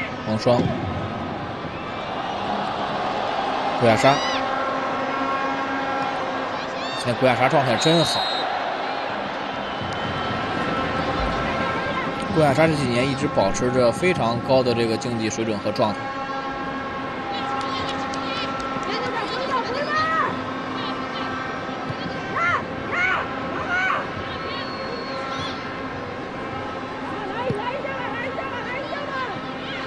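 A large stadium crowd murmurs and cheers steadily in the distance.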